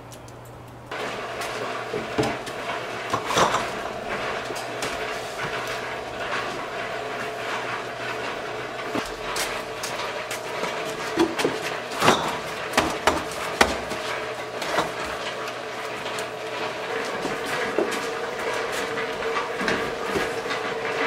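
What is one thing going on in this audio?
Cases of canned drinks thud and clink.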